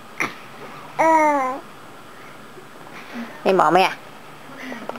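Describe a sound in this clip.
A baby coos and squeals close by.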